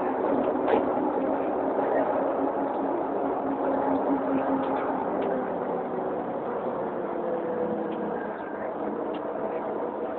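A crowd of men and women chatters all around, close by.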